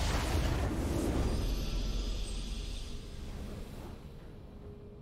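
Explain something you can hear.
A video game victory jingle plays.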